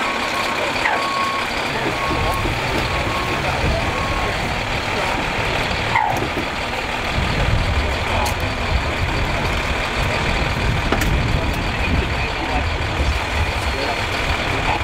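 A large truck engine idles nearby with a steady low rumble.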